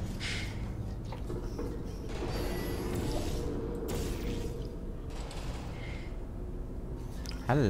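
A portal opens with a humming whoosh.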